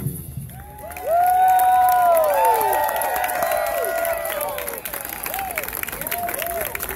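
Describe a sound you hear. A brass band plays loud, swooping notes outdoors.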